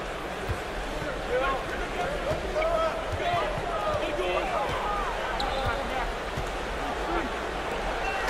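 A basketball bounces steadily on a hard floor.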